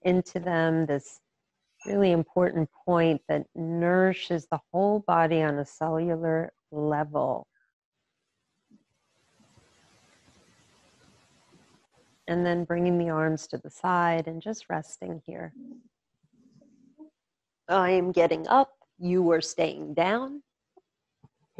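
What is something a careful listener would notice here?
A woman speaks calmly and slowly into a close microphone, pausing between phrases.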